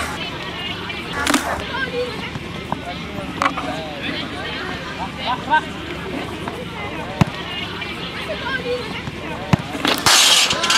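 A football is kicked on a grass pitch.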